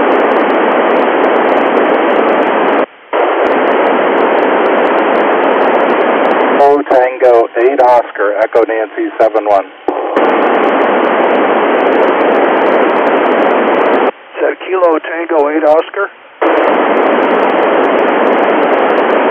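A radio receiver hisses with loud static between transmissions.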